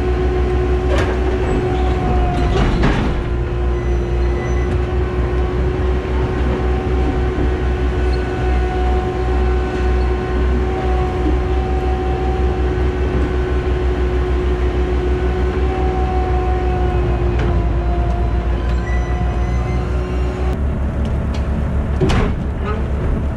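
A loader's metal bucket clanks sharply a few times.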